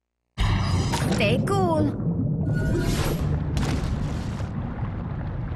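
Bubbles gurgle and pop underwater.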